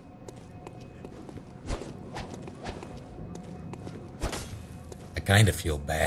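Footsteps run on cobblestones.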